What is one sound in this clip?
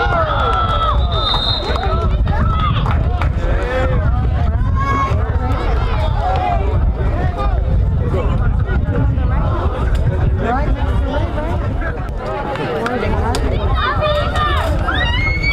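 Men and teenage boys talk and call out nearby.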